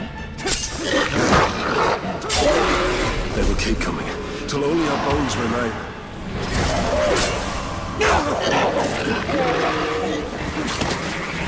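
Sharp blows strike in a fight.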